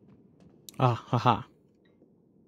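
A control panel beeps twice with an electronic chime.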